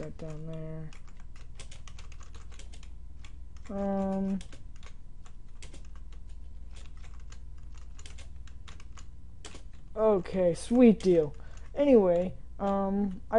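Quick soft clicks tick as blocks move and rotate in a game.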